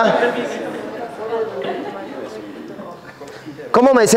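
A crowd of young people murmurs and chatters in the background.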